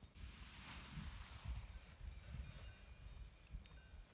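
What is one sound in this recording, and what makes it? A paraglider canopy flaps and rustles in the wind.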